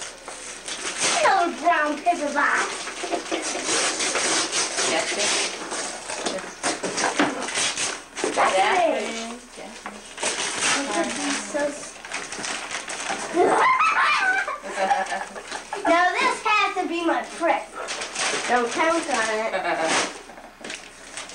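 A young child talks and calls out excitedly, close by.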